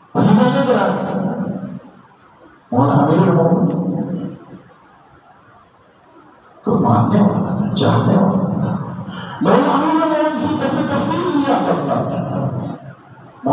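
A man preaches with force into a microphone over loudspeakers in an echoing hall.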